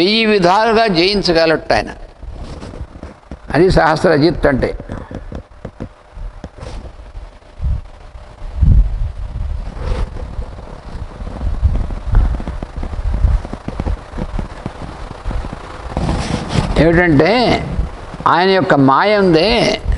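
An elderly man chants slowly in a wavering voice, close to a microphone.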